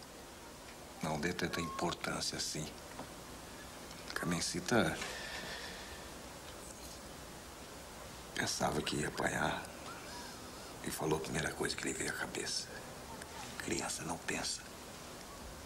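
A man speaks softly and earnestly, close by.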